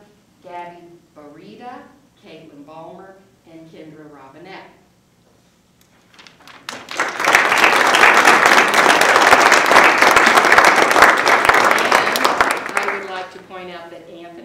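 A woman speaks into a microphone over loudspeakers in a large room.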